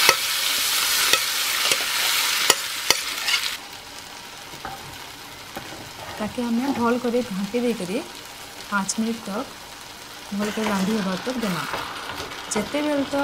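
A spoon scrapes and knocks against a frying pan while stirring.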